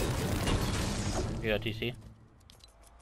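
A pickaxe strikes wood with repeated thuds.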